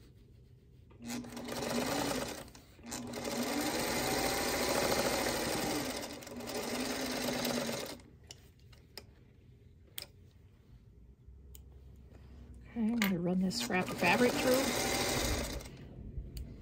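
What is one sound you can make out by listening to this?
An electric sewing machine runs and stitches in bursts.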